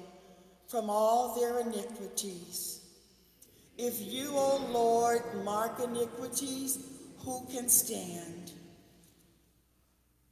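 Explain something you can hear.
A woman speaks through a microphone, echoing in a large hall.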